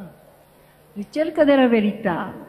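A woman speaks into a microphone with animation, heard through a loudspeaker in a large echoing hall.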